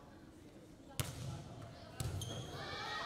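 A volleyball is struck with hard slaps.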